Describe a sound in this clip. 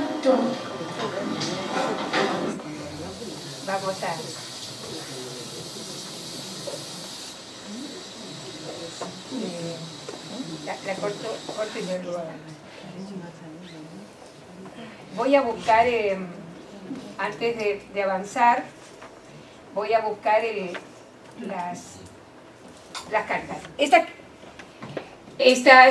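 A woman speaks calmly through a microphone in a room with some echo.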